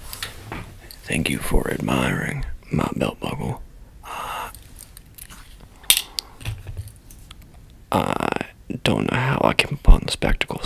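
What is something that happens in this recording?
A young man speaks quietly and closely.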